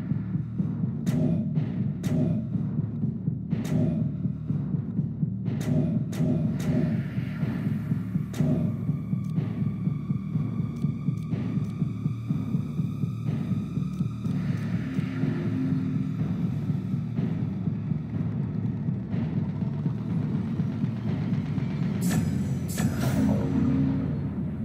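Short menu clicks tick quickly, one after another.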